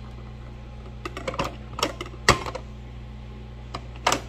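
Fingers tap on a metal lid.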